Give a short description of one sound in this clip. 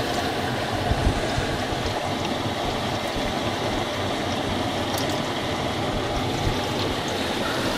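Water pours in a thin stream into a plastic bottle.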